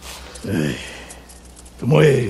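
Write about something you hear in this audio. A middle-aged man sighs.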